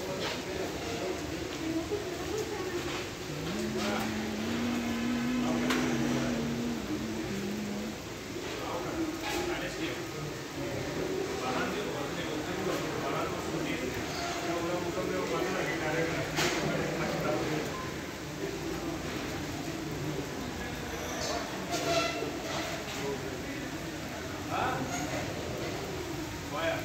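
Rain falls steadily outdoors, pattering on leaves and wet ground.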